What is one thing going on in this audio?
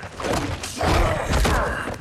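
A reptilian creature roars.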